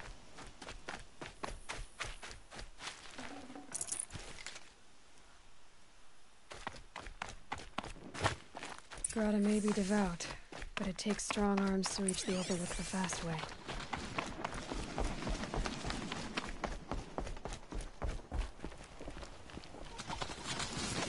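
Quick footsteps crunch over rough ground.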